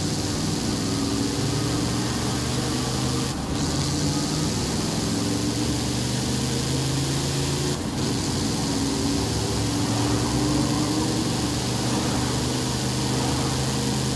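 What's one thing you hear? A truck engine revs as it accelerates.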